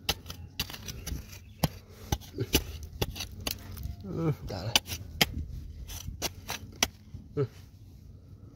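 A metal scraper scrapes and knocks through dry, gravelly soil.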